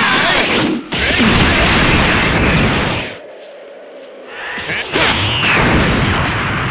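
An energy blast roars and crackles loudly.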